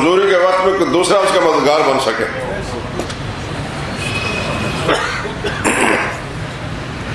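A middle-aged man speaks calmly into a microphone over a loudspeaker, echoing in a large hall.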